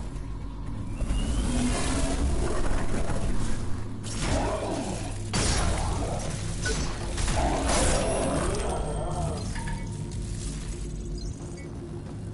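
Heavy metal blows clang and crash during a fight.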